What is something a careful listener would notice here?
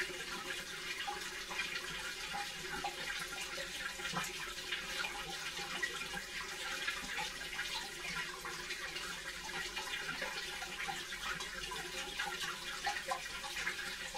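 A front-loading washing machine runs.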